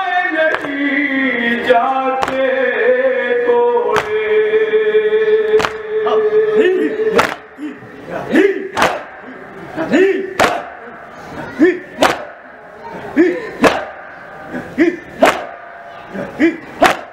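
Men beat their chests in a steady rhythm.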